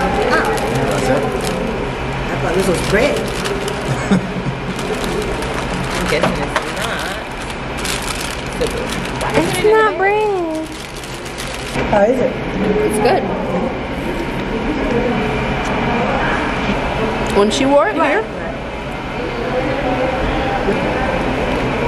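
Several adults chat nearby in a busy, echoing room.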